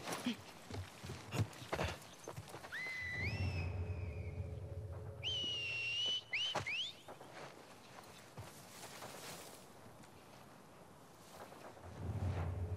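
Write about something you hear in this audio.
Footsteps rustle softly through grass and ferns.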